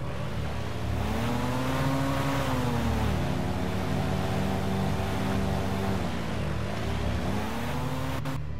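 A boat engine hums steadily, rising and falling in pitch.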